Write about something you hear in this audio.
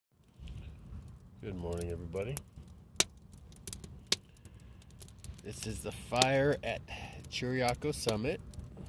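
A campfire crackles and pops outdoors.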